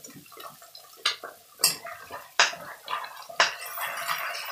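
A metal spoon scrapes and clinks against a frying pan.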